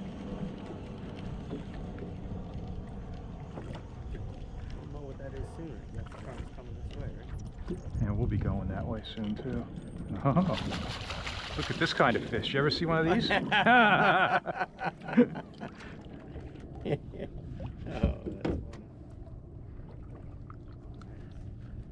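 Wind buffets the microphone on open water.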